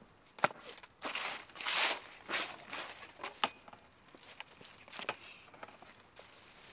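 Crumpled paper rustles and crackles in a dustpan.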